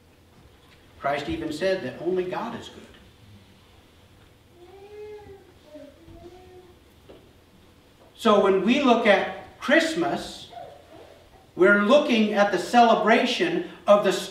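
A middle-aged man speaks calmly with pauses, heard in a room with a slight echo.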